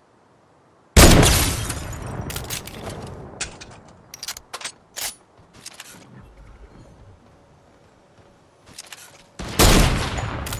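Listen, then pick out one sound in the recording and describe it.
A sniper rifle fires a loud shot that echoes away.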